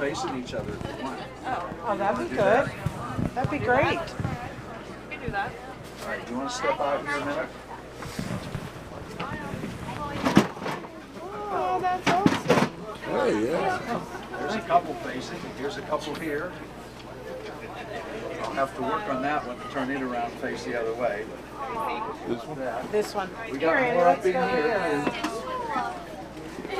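A woman talks nearby in a casual, chatty way.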